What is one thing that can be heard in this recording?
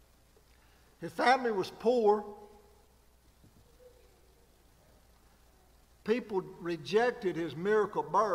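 An elderly man speaks with emphasis into a microphone, with pauses between phrases.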